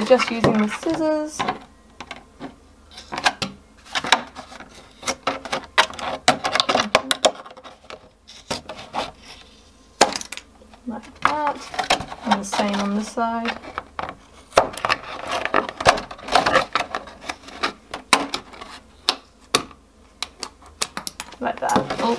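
Scissors snip and crunch through stiff plastic.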